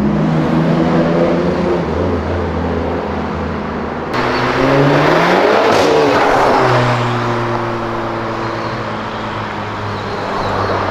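Car engines hum steadily as traffic drives along a street.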